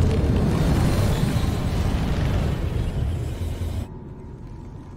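A rocket engine roars loudly.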